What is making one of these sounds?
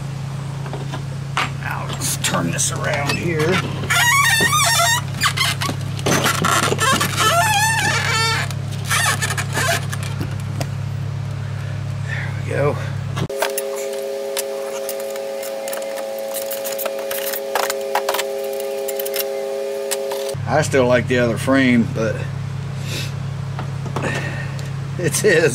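Metal parts clink and rattle as they are handled.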